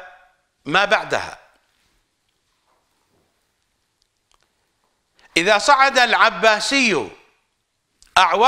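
An older man speaks with animation into a close microphone, pausing between phrases.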